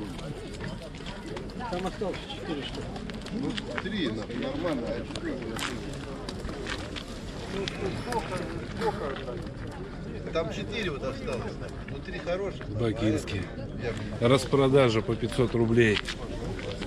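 People talk nearby outdoors.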